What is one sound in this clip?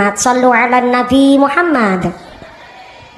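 A woman sings loudly through a microphone and loudspeakers, with a ringing echo.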